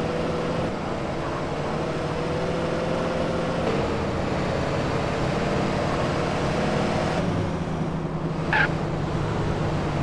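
A car engine roars steadily at speed.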